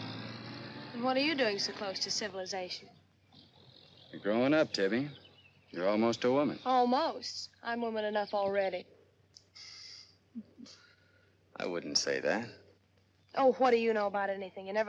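A young woman speaks nearby.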